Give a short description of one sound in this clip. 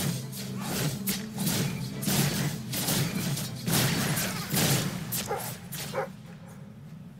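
Magic blasts crackle and burst in a fight.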